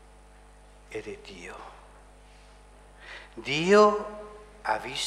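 A middle-aged man speaks slowly and solemnly through a microphone.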